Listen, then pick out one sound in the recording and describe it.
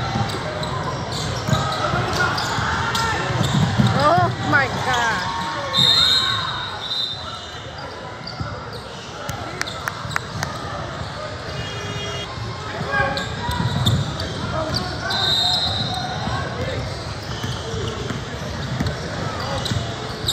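A basketball bounces on a hard floor, echoing.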